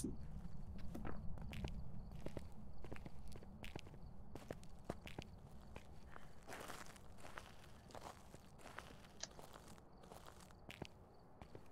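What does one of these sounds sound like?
Footsteps tread softly on hard ground.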